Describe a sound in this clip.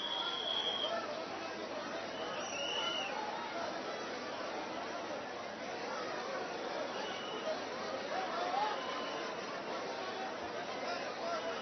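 A dense crowd chatters and calls out loudly all around.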